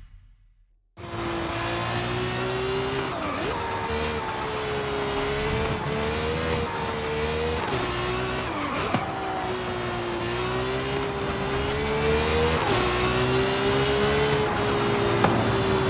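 A sports car engine roars at high revs, with the pitch rising and dropping as gears shift.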